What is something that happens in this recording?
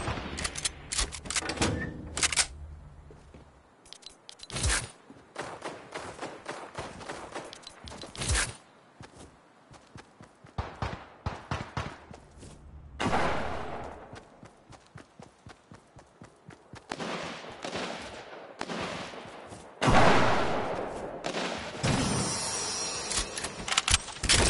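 Quick footsteps patter on wooden boards and grass.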